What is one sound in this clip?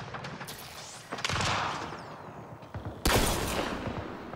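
An explosion bursts with a loud rumble.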